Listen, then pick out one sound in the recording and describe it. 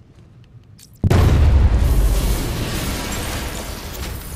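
A loud explosion booms and rumbles, echoing around a large hall.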